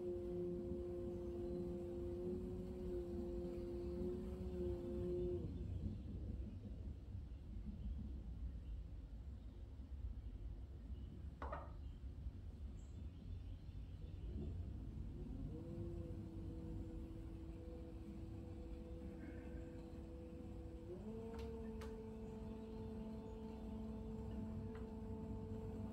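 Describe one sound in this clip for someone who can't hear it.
A potter's wheel motor hums steadily, shifting pitch now and then.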